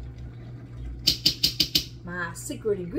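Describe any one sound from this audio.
A spoon scrapes against a metal pot.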